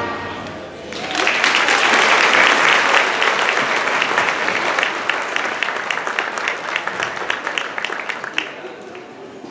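A large audience applauds in a big echoing hall.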